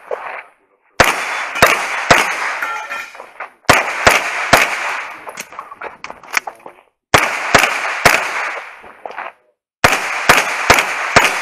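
Gunshots crack in quick bursts outdoors, echoing off the surroundings.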